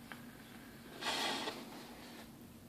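A man exhales a long breath close by.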